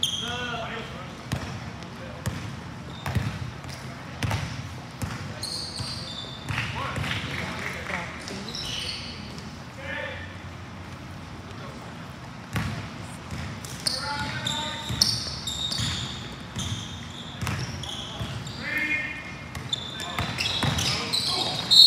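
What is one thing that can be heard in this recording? Sneakers squeak sharply on a hardwood court, echoing in a large hall.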